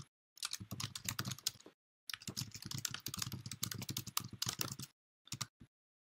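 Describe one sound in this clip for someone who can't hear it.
Keys clatter quickly on a keyboard as someone types.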